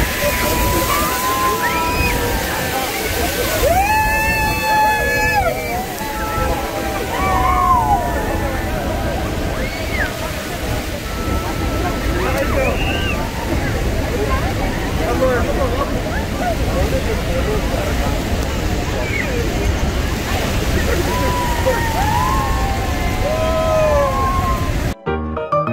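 A crowd of people shout and cheer excitedly nearby.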